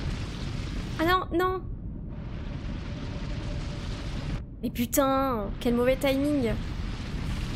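A young woman exclaims with animation into a close microphone.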